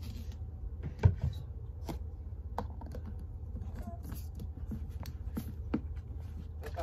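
Plastic knocks and clicks as a bottle lid is handled and set on a bottle.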